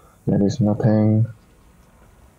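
A young man speaks loudly and briefly into a nearby microphone.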